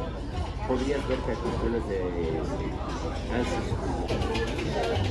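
A crowd of men and women chatter around a busy bar.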